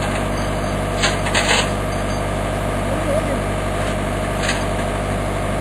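A metal excavator bucket clanks and knocks.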